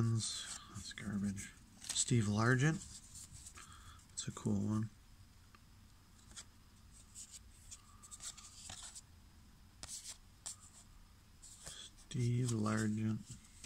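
Trading cards slide and rustle softly as they are shuffled by hand.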